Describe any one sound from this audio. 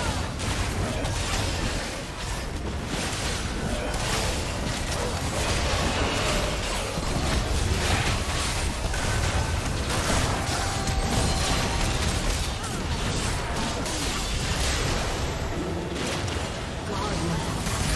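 Spell blasts and impacts crackle and boom in a game battle.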